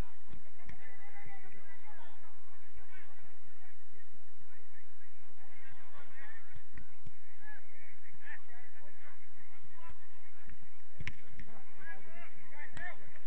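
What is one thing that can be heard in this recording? Several men shout and call out across an open field outdoors.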